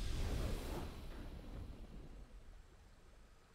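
A deep booming game sound swells and slowly fades away.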